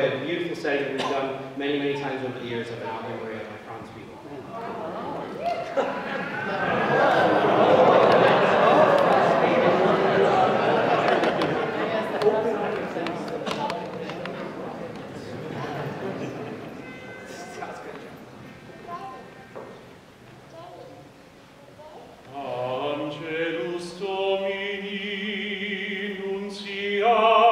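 A large choir of men sings together in an echoing hall.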